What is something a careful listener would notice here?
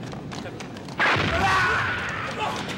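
An explosion bursts with a deep boom.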